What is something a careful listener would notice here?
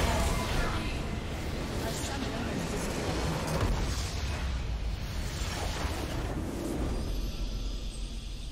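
Spell effects crackle and explode in a noisy fight.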